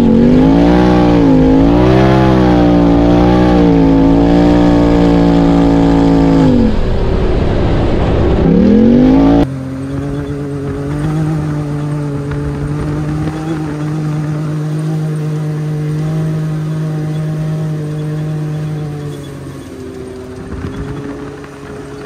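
An off-road vehicle's engine drones close by, rising and falling in pitch as it revs.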